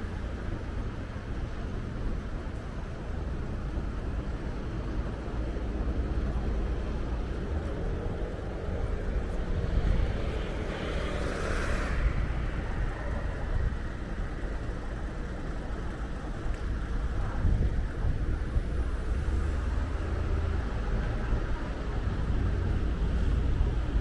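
City traffic rumbles steadily in the street outdoors.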